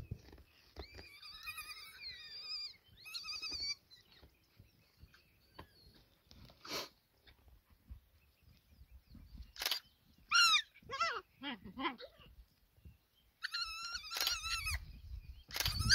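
Hyena cubs squeal and whoop in high calls.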